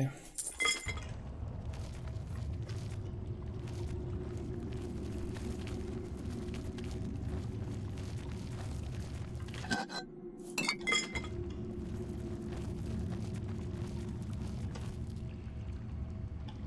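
Footsteps scuff slowly on a stone floor.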